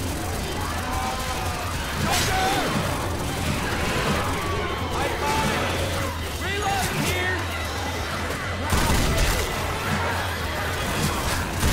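A blade swings and slashes through flesh.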